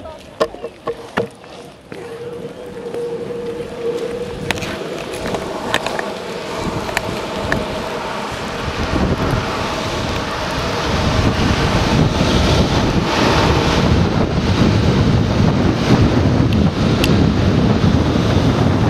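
Skateboard wheels roll and rumble on asphalt, growing louder with speed.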